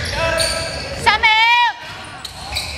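A referee's whistle trills sharply.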